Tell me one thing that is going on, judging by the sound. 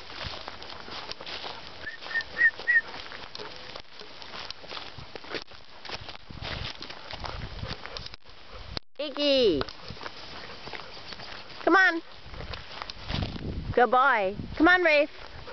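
Dogs' paws rustle through dry grass.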